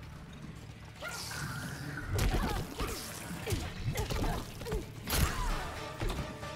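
Punches and kicks land with heavy thuds in a fight.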